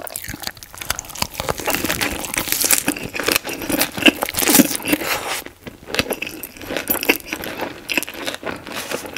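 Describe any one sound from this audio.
A woman chews and crunches fresh vegetables loudly and close up.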